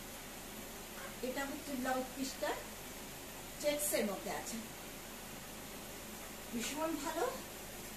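A woman speaks calmly close by in short bursts.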